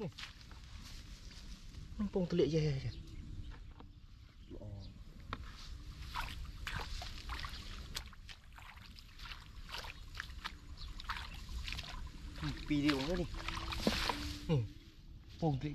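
Dry straw rustles and crunches underfoot as a person walks.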